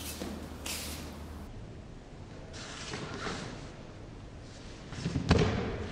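Feet shuffle and slide on a padded mat.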